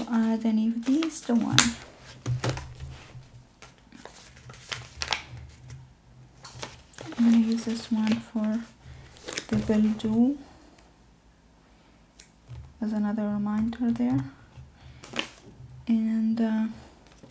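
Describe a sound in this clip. Paper sheets rustle and crinkle as they are handled.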